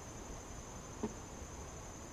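A wooden hive frame knocks against a box.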